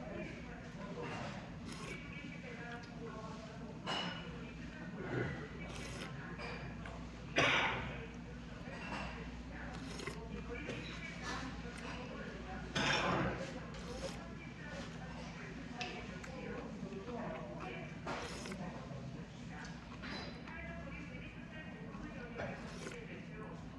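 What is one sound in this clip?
A man slurps soup from a spoon.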